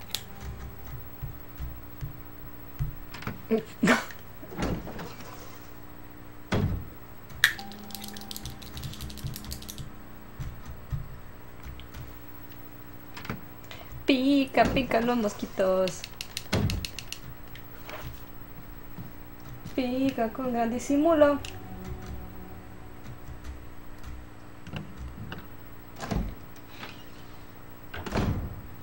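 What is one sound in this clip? A heavy wooden door creaks slowly open.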